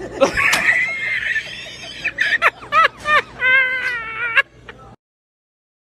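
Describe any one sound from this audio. A young man laughs loudly in high, squealing bursts.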